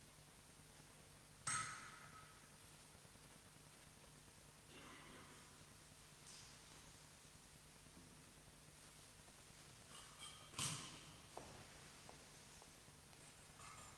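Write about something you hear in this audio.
Footsteps move softly across a stone floor in a large echoing hall.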